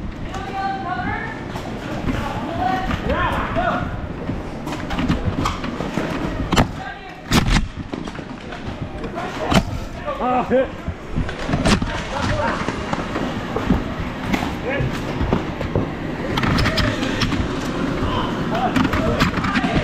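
Children shout and chatter around a large echoing hall.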